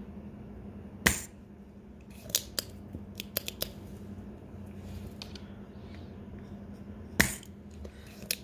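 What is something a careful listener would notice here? Small metal tools click and tap together.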